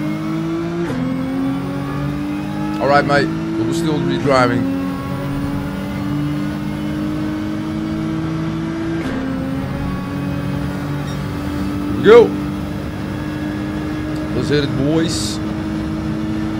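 A racing car engine drones steadily and shifts up through the gears.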